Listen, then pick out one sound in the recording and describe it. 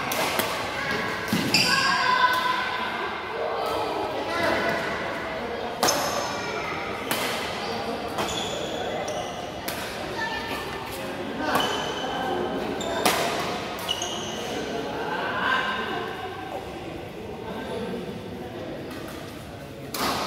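Young men call out to each other across the hall.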